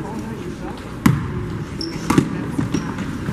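A basketball thuds on a wooden floor in an echoing hall.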